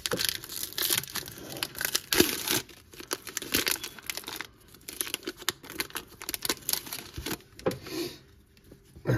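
A plastic wrapper crinkles and tears as it is pulled open.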